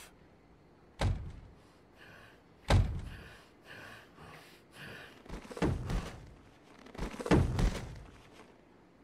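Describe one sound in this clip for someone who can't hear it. Heavy blows thud as two figures fight.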